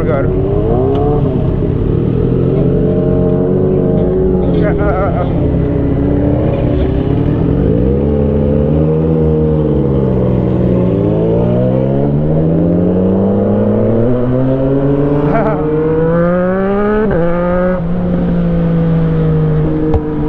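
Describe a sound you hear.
A motorcycle engine roars close by, revving up and down as it rides.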